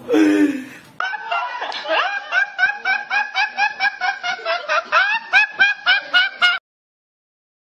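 A young man laughs loudly in rhythmic, high-pitched bursts.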